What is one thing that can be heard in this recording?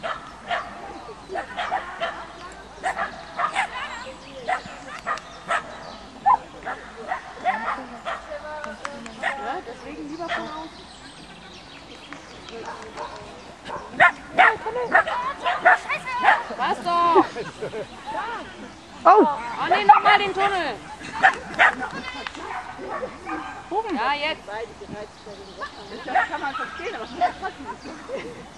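A dog barks repeatedly.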